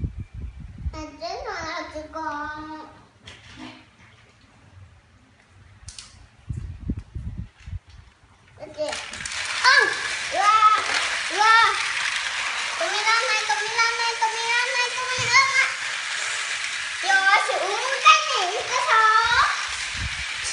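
A young child talks and sings loudly nearby.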